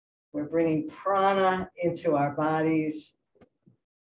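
A woman speaks calmly through a microphone, as on an online call.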